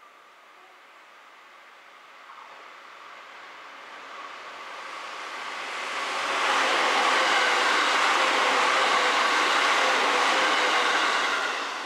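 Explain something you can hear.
A train rumbles past close by, its noise building and then holding loud and steady.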